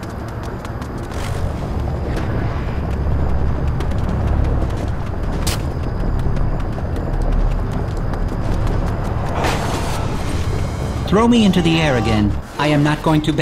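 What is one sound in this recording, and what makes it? A low whooshing rush of wind roars steadily as a runner speeds along.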